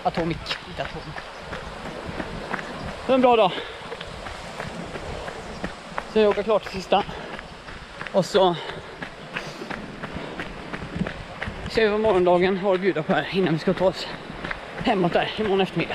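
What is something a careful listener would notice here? A young man talks breathlessly and close to the microphone while running.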